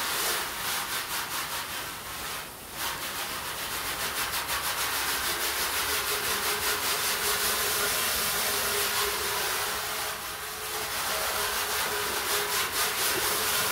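A garden hose nozzle sprays a fine mist of water, hissing steadily.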